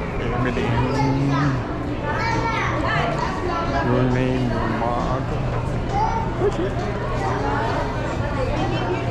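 A crowd of adults chatters nearby in a busy indoor space.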